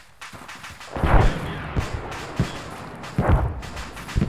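Rifle shots crack loudly nearby.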